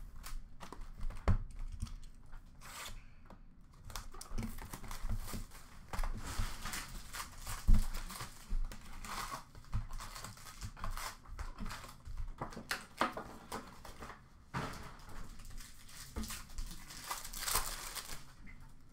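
Plastic wrappers crinkle.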